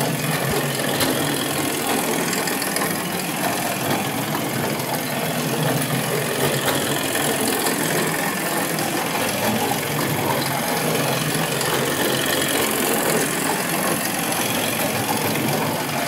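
A toy tractor's wheels roll over wooden floorboards.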